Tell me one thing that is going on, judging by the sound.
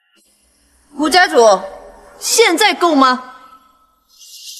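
A young woman speaks coolly and closely.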